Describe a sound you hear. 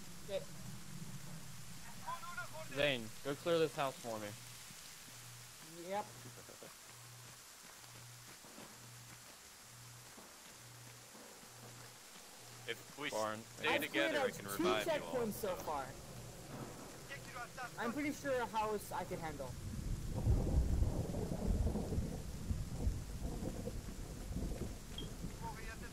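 Rain falls steadily.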